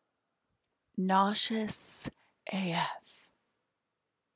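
A woman talks briefly and calmly close to a microphone.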